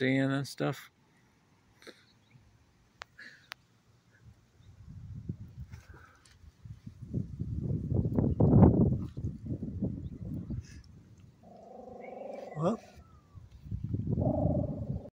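A small dog whines close by.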